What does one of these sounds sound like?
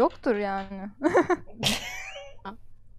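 A young woman laughs through a microphone.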